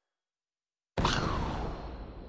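A sparkling whoosh bursts out loudly.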